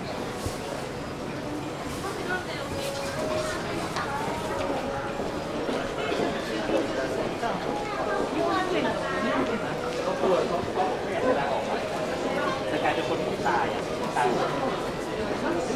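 A crowd of men and women murmurs in a large echoing hall.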